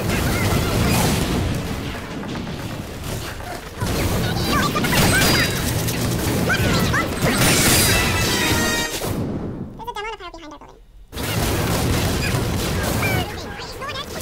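Gunfire crackles in quick bursts.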